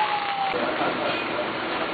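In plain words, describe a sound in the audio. A crowd of men talk and call out nearby.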